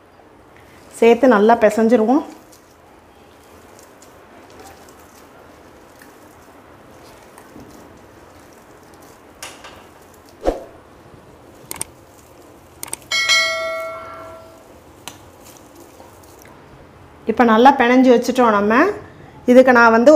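Soft dough squishes as a hand kneads it in a metal plate.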